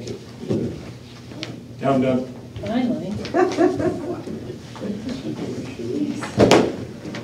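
A man speaks calmly into a microphone in a room.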